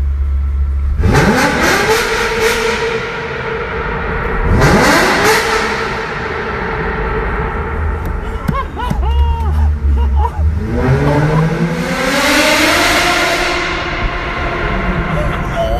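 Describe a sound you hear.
A car engine revs hard and roars, echoing off tunnel walls.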